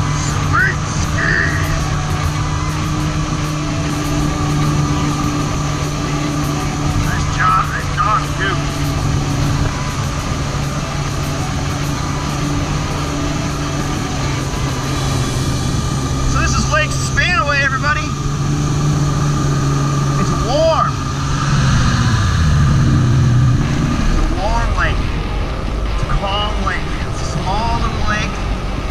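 A personal watercraft engine drones steadily and changes pitch as it speeds up.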